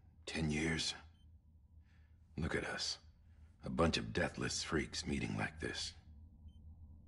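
A man speaks in a deep, calm voice, close by.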